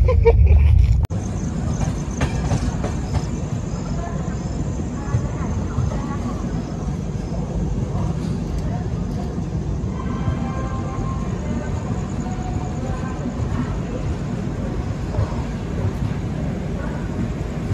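A train rumbles along its tracks outdoors.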